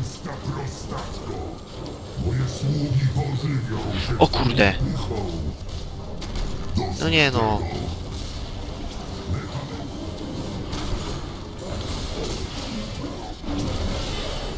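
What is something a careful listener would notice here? Magic spells crackle and blast repeatedly.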